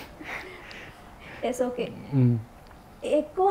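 A young man laughs softly close to a microphone.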